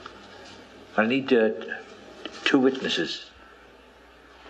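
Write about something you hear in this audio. A man speaks in a low, firm voice.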